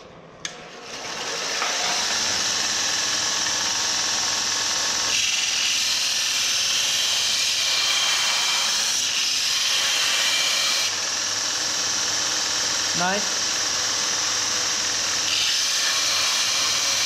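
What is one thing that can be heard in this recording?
A belt grinder whirs steadily.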